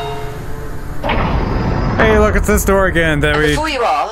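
A heavy hatch door slides open with a mechanical hiss.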